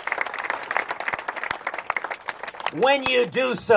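A crowd claps outdoors.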